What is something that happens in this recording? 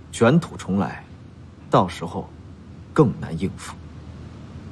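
A young man speaks calmly and firmly, close by.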